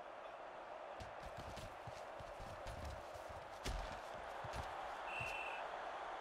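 Football players collide in a tackle with heavy thuds.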